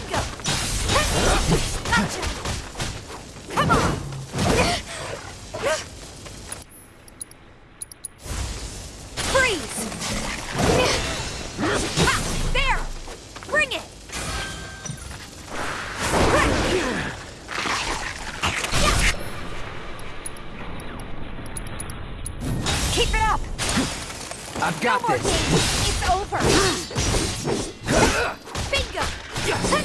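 Blades and fists strike a creature with sharp impacts.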